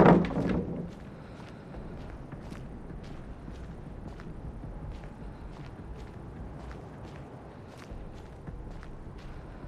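Footsteps run through grass.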